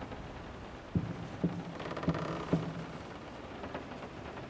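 Small objects knock and clatter in a wooden drawer.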